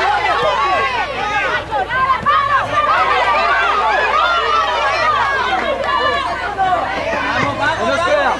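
A crowd of children shouts and calls out excitedly outdoors.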